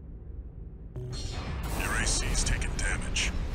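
A repair spray hisses from a robot.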